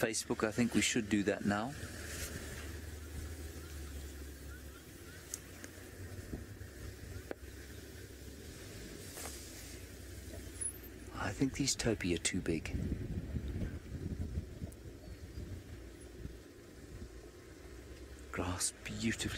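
Wind blows steadily across open grassland.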